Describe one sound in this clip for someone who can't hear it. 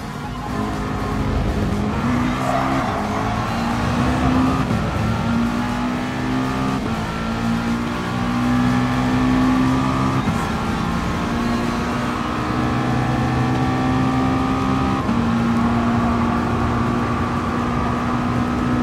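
A race car engine roars loudly, rising in pitch and dropping with each gear change.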